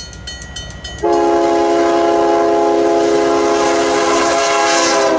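A train engine rumbles as it passes close by.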